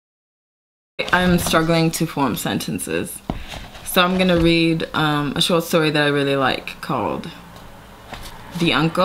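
A young woman speaks calmly and close by, reading aloud at times.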